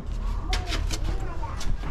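Footsteps scuff on stone steps.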